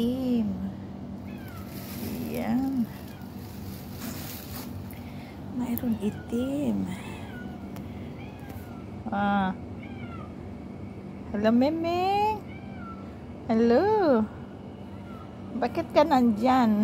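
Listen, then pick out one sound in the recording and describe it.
A cat meows repeatedly, close by.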